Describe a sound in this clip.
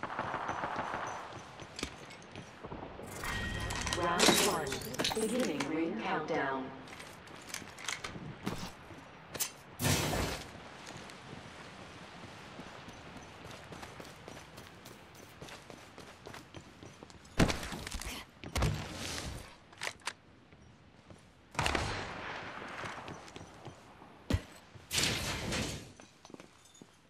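Footsteps patter quickly across a hard floor.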